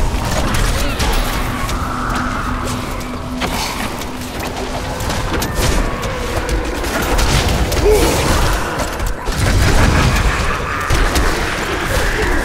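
Magic spells crackle and blast in a fast fight.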